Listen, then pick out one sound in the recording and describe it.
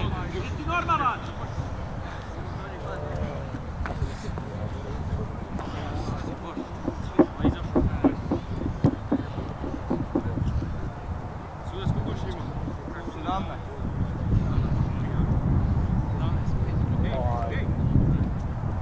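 Young men shout to each other across a field in the distance.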